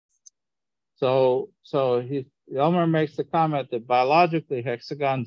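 A man speaks calmly through a microphone over an online call.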